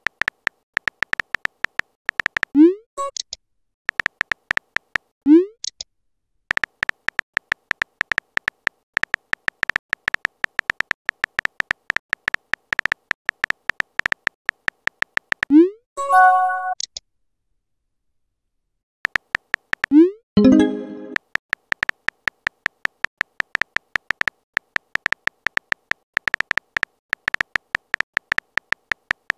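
Keyboard keys click rapidly as a message is typed.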